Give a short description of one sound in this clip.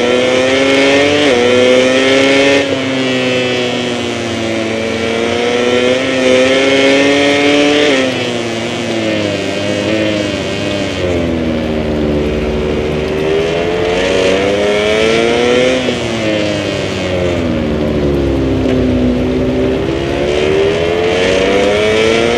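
A motorcycle engine roars loudly, its pitch rising and falling as it speeds up and slows down.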